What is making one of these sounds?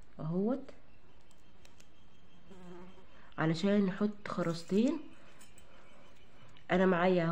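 Small plastic beads click softly against one another.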